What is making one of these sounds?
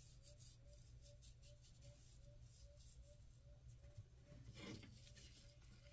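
Hands rub and press on a sheet of paper.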